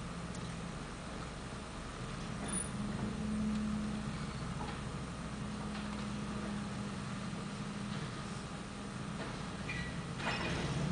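A garbage truck engine idles with a low, steady hum.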